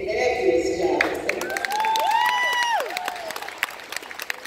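Children clap their hands.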